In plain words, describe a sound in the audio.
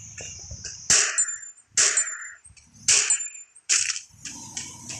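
A rifle fires several loud, sharp shots.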